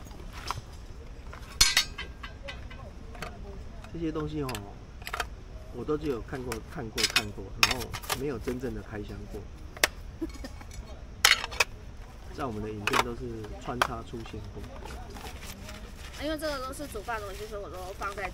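Metal cookware clinks and clatters as it is handled.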